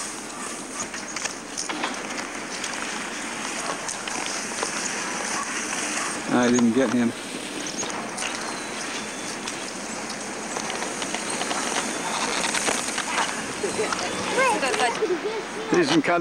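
Skis slide and scrape over snow nearby.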